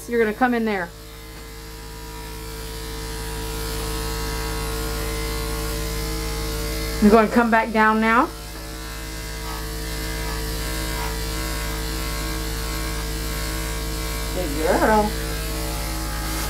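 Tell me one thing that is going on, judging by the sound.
Electric clippers buzz steadily.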